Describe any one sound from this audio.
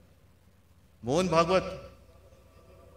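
A middle-aged man speaks forcefully into a microphone over a loudspeaker, echoing outdoors.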